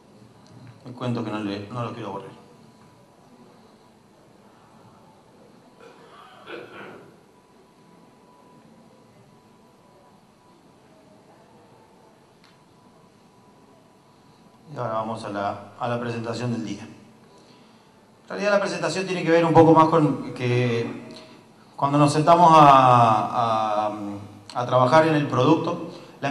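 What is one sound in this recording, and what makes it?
A man speaks calmly through a microphone, echoing in a large room.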